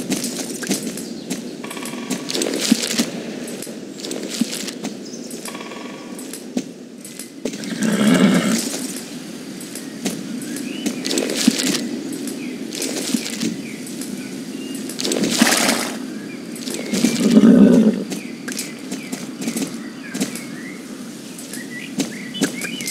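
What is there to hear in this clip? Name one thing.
Hooves clop steadily on a path as a horse walks.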